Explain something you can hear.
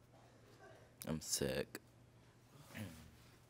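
A young woman speaks briefly and softly, close to a microphone.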